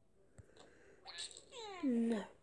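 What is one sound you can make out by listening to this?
A cartoon rope snaps with a short game sound effect.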